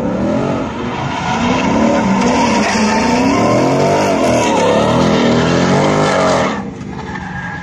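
A car engine revs hard and roars up and down.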